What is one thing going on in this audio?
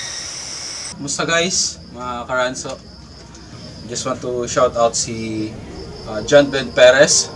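A young man talks calmly and close to a microphone.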